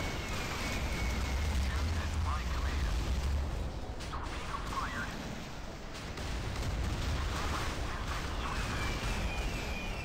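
Explosions rumble steadily with a deep roar.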